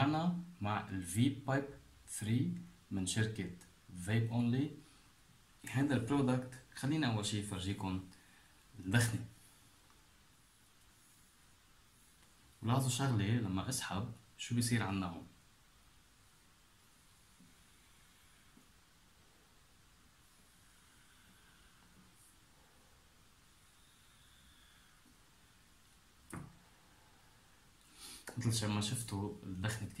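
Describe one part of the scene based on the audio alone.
A young man talks calmly and close up.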